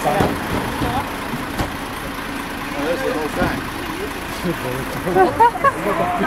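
A bus engine idles nearby.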